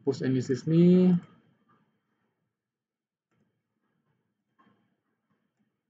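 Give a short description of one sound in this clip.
A man speaks through a microphone, briefly and then quietly.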